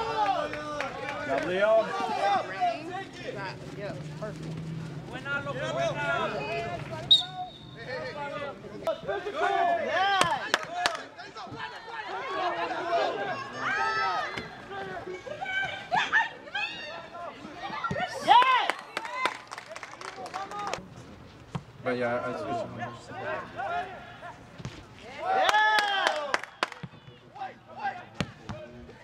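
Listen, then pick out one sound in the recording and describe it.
A crowd of spectators cheers and yells nearby.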